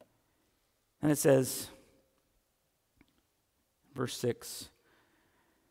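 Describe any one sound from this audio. A man speaks through a microphone in a large echoing hall, pausing between phrases.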